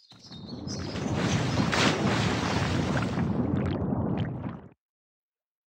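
Water rushes and splashes as stone pillars rise out of it.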